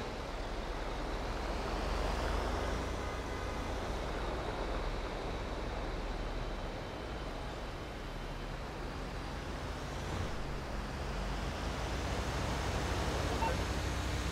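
Cars drive past on a road with a steady engine hum.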